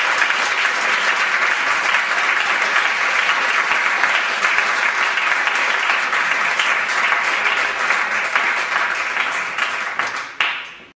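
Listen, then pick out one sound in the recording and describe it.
A large audience chatters and murmurs indoors.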